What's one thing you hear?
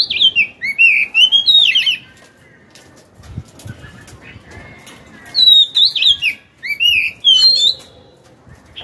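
A caged songbird sings loud, sweet whistling phrases up close.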